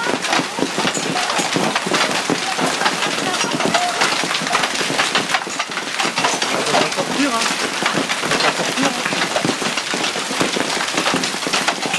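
Hail clatters on paving stones and splashes into water outdoors.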